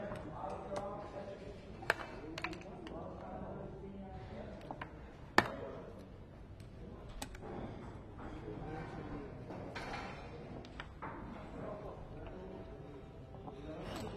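Playing pieces click and clack as they are moved on a wooden board.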